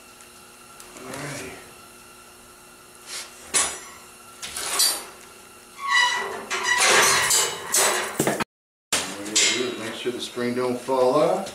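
Boots thump and scrape on a metal table.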